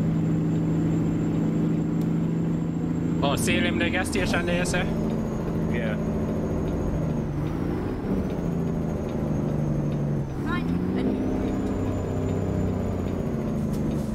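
A truck engine drones steadily, dropping and rising in pitch as gears change.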